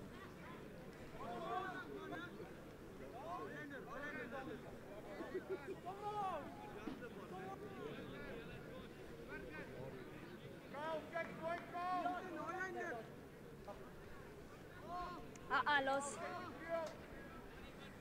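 Young men call out to one another, heard from a distance outdoors.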